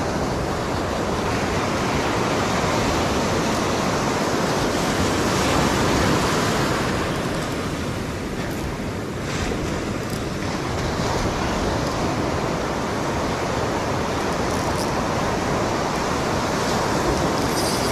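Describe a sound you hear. Waves crash and wash up on a beach close by.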